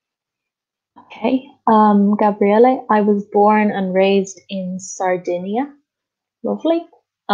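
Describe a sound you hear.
A woman speaks clearly and calmly into a microphone, heard over an online call.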